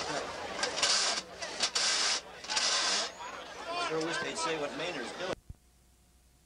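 Many voices chatter and call out across an open field.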